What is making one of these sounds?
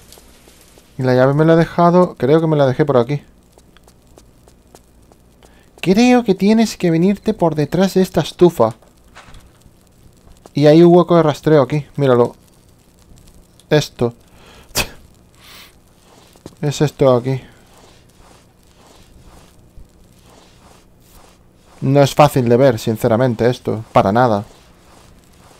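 A man talks with animation into a close microphone, in short bursts.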